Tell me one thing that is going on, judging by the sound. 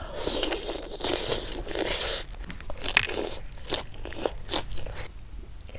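A young woman chews and slurps food noisily close by.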